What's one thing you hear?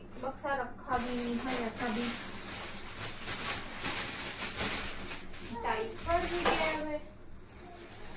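A plastic bag rustles and crinkles.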